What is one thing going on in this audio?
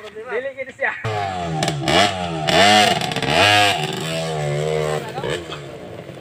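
A dirt bike engine revs up and down close by.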